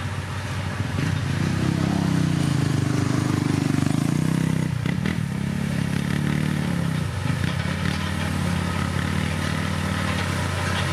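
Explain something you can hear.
A motorbike engine buzzes as it passes close by.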